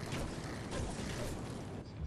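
A pickaxe strikes a wall.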